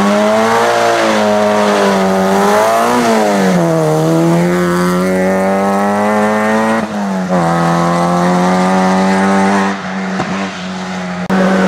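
A rally car engine revs hard and roars as it accelerates past.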